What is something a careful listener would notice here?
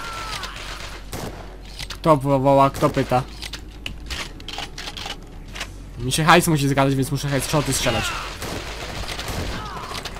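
A sniper rifle fires with sharp, loud cracks.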